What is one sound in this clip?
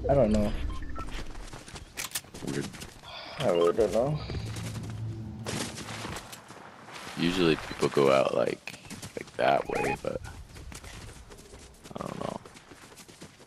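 Footsteps patter quickly over grass and dirt.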